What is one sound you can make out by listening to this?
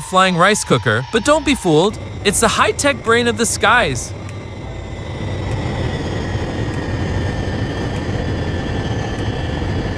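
Jet engines roar as a large aircraft takes off.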